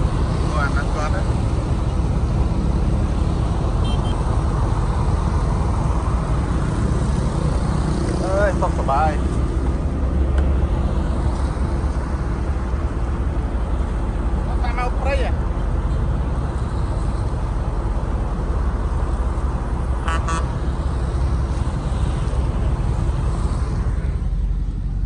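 Motorbikes and cars pass by on a road nearby.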